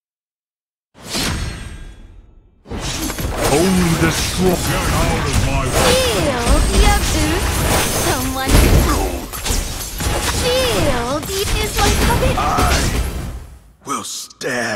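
Battle sound effects clash, blast and whoosh.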